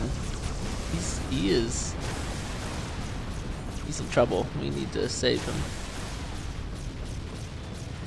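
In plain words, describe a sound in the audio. Gunfire and energy blasts crackle in a battle.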